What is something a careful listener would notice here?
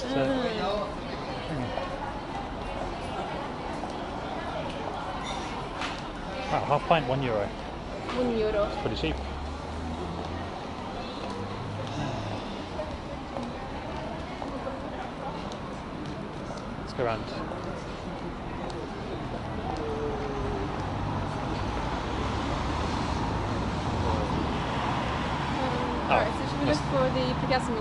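Men and women passing by chat in a street outdoors.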